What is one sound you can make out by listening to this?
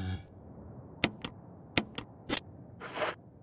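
Menu clicks beep sharply a few times.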